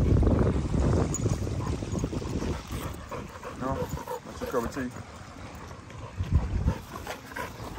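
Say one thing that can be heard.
A dog pants rapidly close by.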